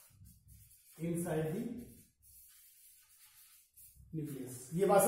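A man speaks in a lecturing tone nearby.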